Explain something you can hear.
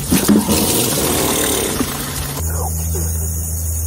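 Water sprays from a garden hose outdoors.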